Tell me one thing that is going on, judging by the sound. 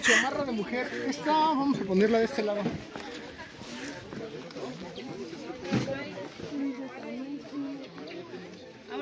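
Several people chatter in the background outdoors.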